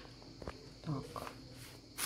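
Tissue paper rustles softly.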